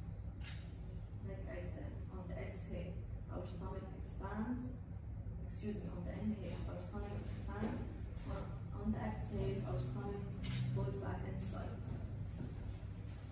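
A young woman speaks calmly in a quiet room.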